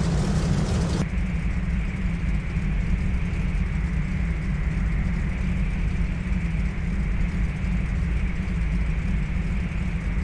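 A propeller plane's engine hums steadily, muffled inside the cabin.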